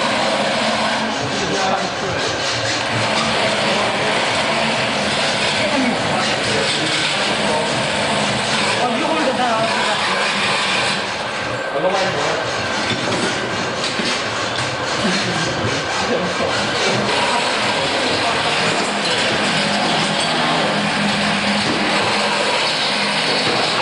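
A power grinder whines loudly as it grinds metal.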